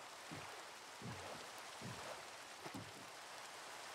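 Footsteps thud on grass and dirt.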